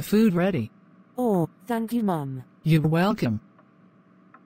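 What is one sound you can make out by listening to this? A woman speaks cheerfully in a synthetic, computer-made voice.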